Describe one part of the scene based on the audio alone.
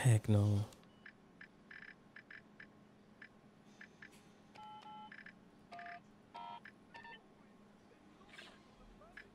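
Keypad buttons beep in short electronic tones.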